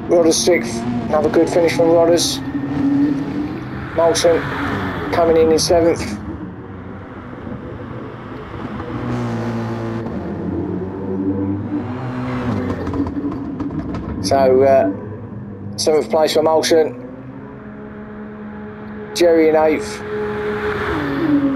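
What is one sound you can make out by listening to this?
A racing car engine roars, revving up and dropping as it shifts gears.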